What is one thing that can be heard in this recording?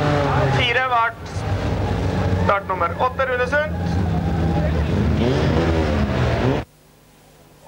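A car engine roars and revs as the car speeds past on the track.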